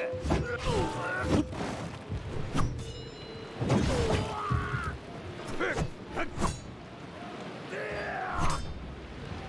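Swords clash and clang sharply in a fight.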